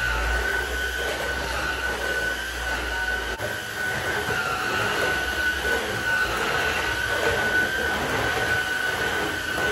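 A cordless vacuum cleaner whirs steadily up close.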